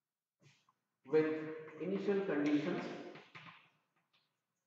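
An older man speaks calmly in a lecturing tone, nearby.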